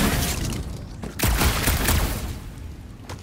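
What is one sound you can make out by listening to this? A fiery explosion booms and crackles.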